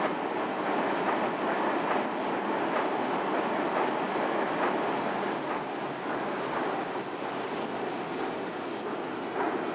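Train wheels clack over rail joints in a quick, uneven rhythm.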